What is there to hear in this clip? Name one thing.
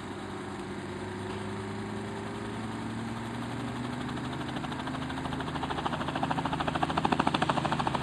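A helicopter engine runs and its rotor thumps, growing louder.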